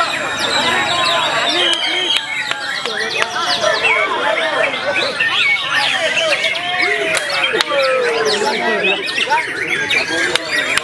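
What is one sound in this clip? Many caged songbirds chirp and whistle busily all around.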